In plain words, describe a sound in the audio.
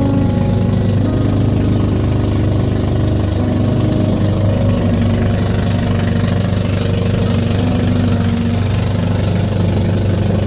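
A boat engine drones loudly and steadily.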